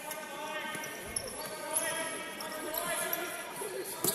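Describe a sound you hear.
A ball thuds as a player kicks it.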